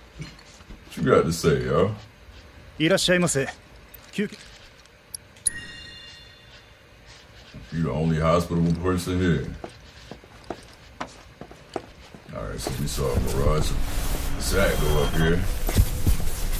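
A man talks casually, close and clear.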